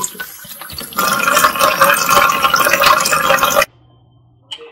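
Tap water runs and splashes into a plastic tub.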